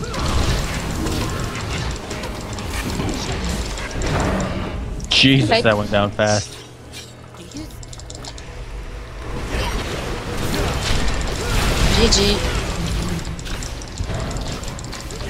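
Magic spells crackle and boom in a busy fight.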